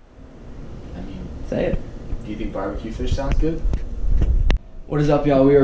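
Another young man talks with animation a few steps away.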